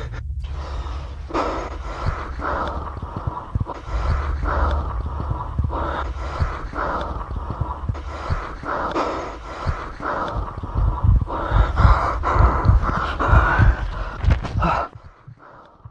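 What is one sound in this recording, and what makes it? An older man sings loudly with feeling, close by.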